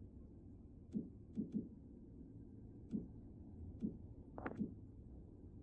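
Soft menu clicks sound a few times.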